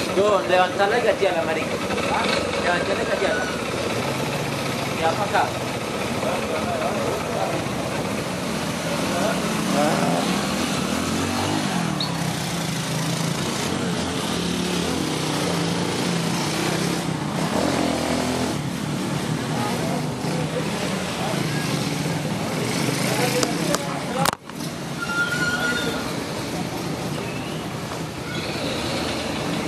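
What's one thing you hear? Men and women talk and call out nearby outdoors.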